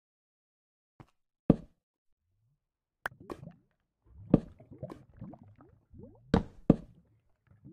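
A torch is set against a stone wall with a soft knock.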